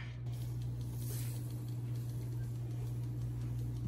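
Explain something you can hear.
Sugar pours with a soft hiss into a pot.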